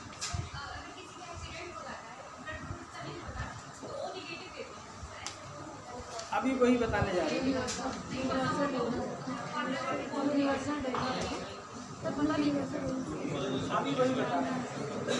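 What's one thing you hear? A middle-aged man speaks calmly and clearly in a room with some echo.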